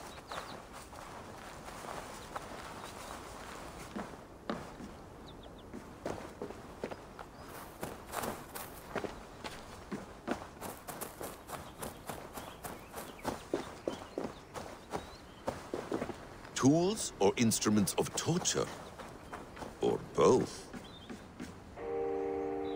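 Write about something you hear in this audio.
Footsteps crunch through dry leaves at a steady walking pace.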